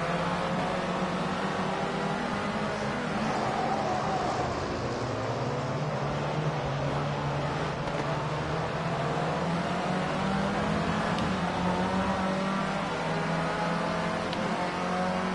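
A racing car engine whines loudly, its pitch rising and falling as gears change.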